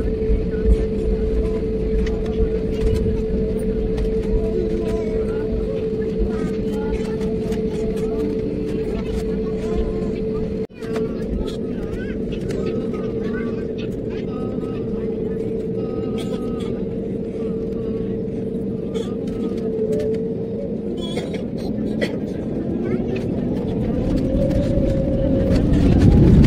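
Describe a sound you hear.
A jet engine roars steadily, its whine rising near the end.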